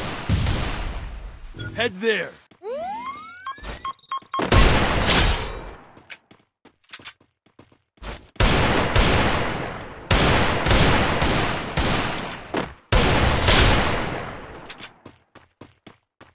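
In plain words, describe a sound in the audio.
Gunshots fire in quick bursts with a ringing echo.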